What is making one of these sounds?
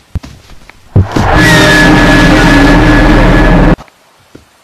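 A creature lets out a sudden, deafening shriek.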